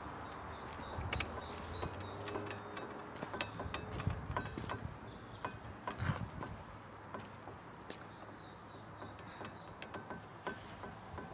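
A metal gate latch clicks and rattles.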